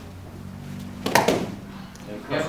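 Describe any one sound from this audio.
A wooden board cracks sharply under a kick.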